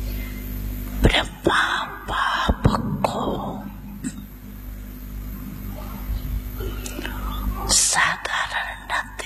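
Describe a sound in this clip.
An elderly man speaks into a microphone, heard through a loudspeaker.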